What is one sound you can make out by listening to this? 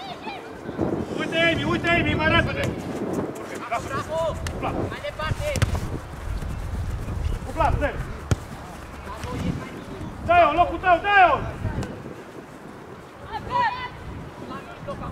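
Young players shout to each other across an outdoor pitch.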